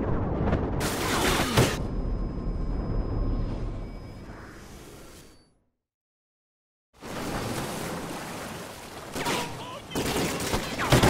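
Rushing water churns and splashes.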